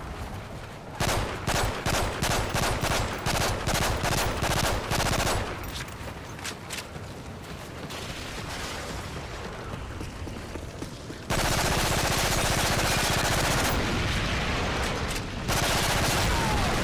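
Rapid bursts of automatic gunfire crack loudly and close.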